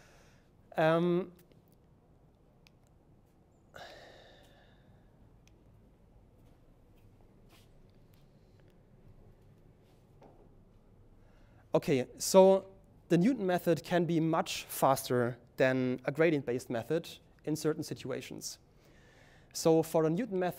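A man lectures calmly through a microphone, pausing now and then.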